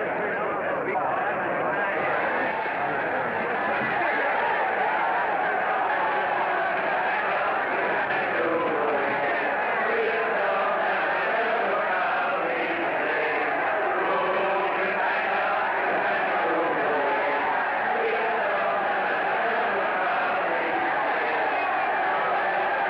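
A large crowd cheers and shouts with excitement.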